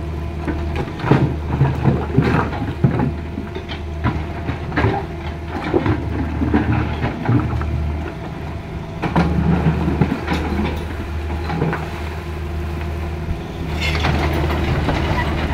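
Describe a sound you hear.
Rocks knock and scrape against a metal bucket.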